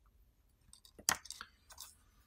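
A small circuit board is set down on a table with a light knock.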